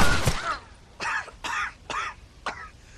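A wounded man groans and gasps in pain.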